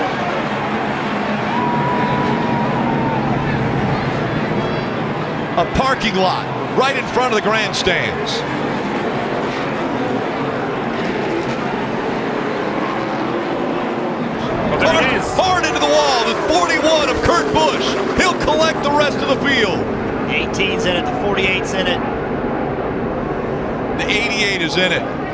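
Race car engines roar loudly as a pack of cars speeds around a track.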